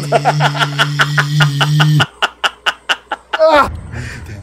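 A man laughs loudly in bursts, close to a microphone.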